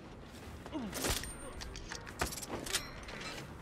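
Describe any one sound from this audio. A rifle is reloaded with sharp metallic clicks.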